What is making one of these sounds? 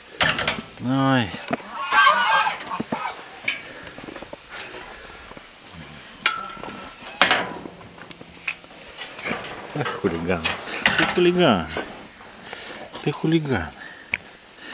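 A bear moans and growls close by.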